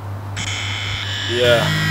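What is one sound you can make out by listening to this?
A young man speaks rhythmically close by.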